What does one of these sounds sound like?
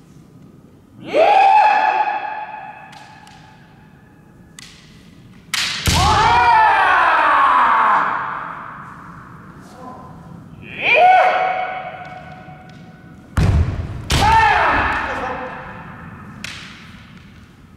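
Men shout loud, drawn-out cries that echo through a large hall.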